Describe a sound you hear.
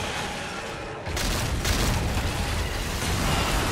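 Debris crashes down with a loud rumble.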